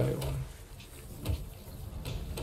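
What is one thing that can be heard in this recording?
A hammer knocks on wooden planks.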